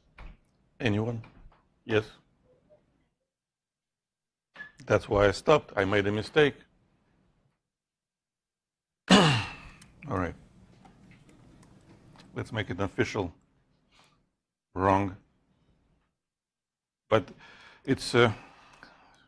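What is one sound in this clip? A man speaks calmly in short phrases with pauses between them.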